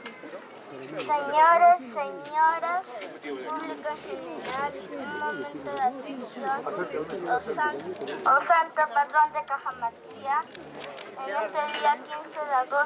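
A young girl speaks loudly into a microphone through a loudspeaker.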